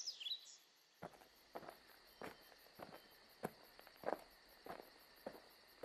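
Footsteps rustle and crunch through dry grass.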